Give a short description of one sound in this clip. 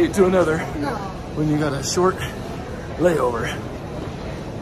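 A middle-aged man talks with animation close to the microphone.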